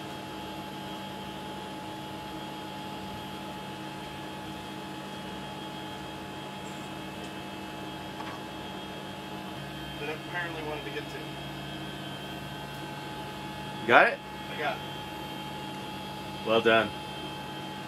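Machinery hums steadily all around.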